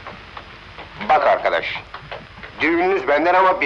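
A man speaks loudly with animation, close by.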